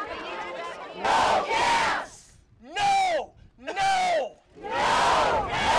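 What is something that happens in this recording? A man shouts out a chant to a crowd.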